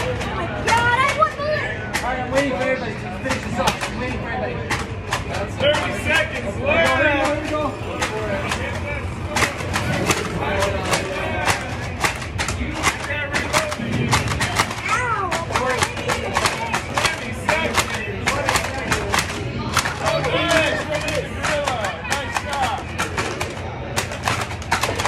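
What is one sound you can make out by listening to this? A crowd of people talk and shout nearby.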